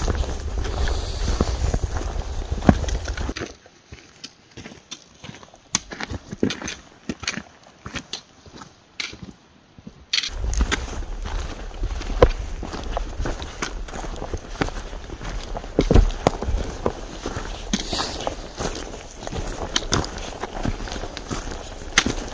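Footsteps crunch on a dirt and gravel trail.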